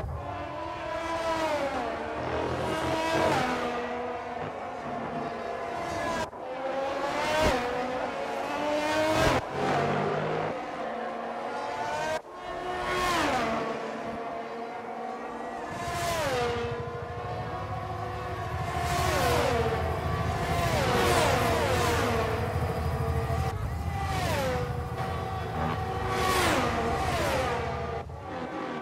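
A racing car engine screams at high revs and drops in pitch as the car shifts gears and passes by.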